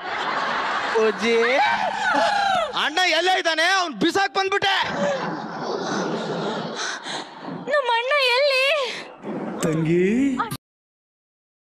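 A young woman speaks dramatically through a microphone.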